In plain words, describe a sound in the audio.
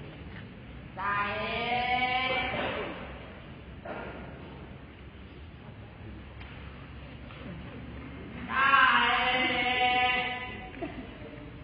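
A choir of voices sings out in a large hall.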